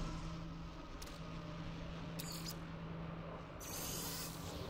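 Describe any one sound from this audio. Soft electronic clicks sound as a menu opens and closes.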